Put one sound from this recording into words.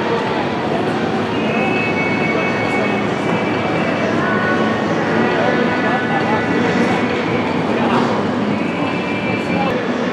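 Race car engines drone loudly as cars roll slowly down a pit lane.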